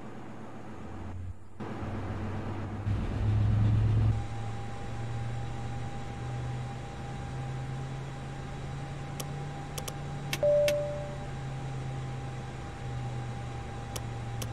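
A low jet engine hum drones steadily.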